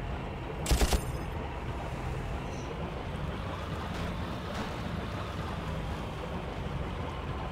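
Water splashes and rushes against a moving boat.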